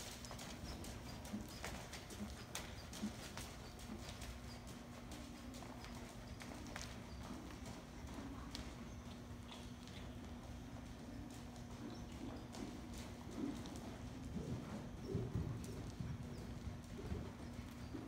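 Hooves thud softly on sand as a horse trots.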